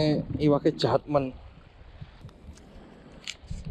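Shallow water laps gently against rocks.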